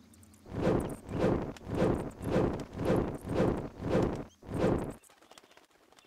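Flames whoosh in quick, regular bursts, one after another.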